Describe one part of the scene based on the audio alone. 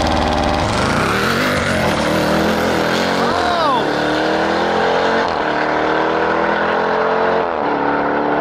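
A car engine roars loudly as the car launches and accelerates away, shifting gears.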